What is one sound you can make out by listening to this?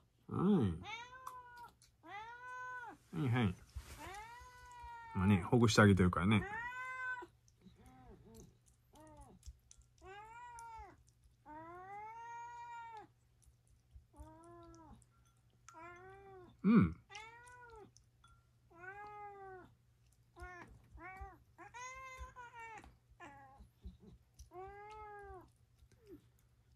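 A cat meows repeatedly, with drawn-out, rising and falling cries.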